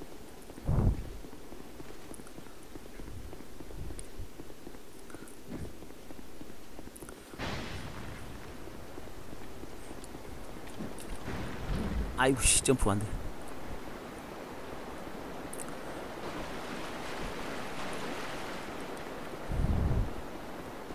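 Footsteps patter quickly across a stone floor.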